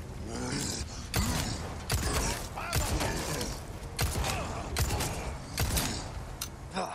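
Gunshots bang out in quick bursts.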